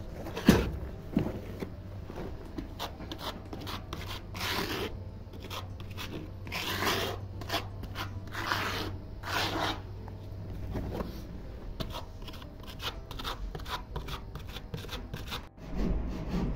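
A trowel scrapes and smooths wet concrete.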